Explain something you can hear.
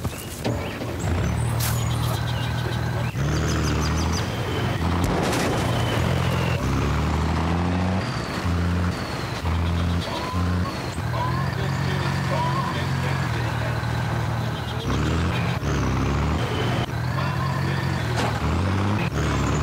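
A heavy truck engine rumbles steadily as the truck drives along.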